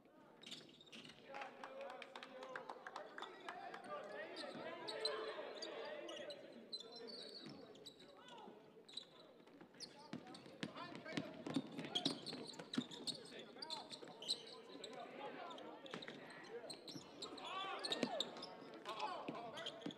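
A crowd murmurs and cheers in an echoing gym.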